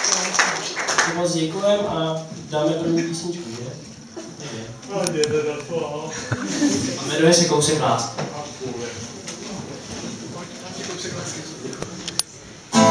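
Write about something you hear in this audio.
A young man sings into a microphone.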